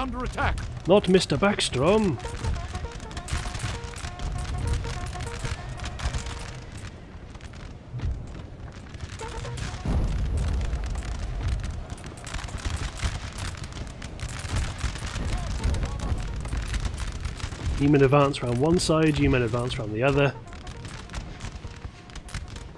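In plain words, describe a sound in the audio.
Musket volleys crackle and pop in rapid bursts.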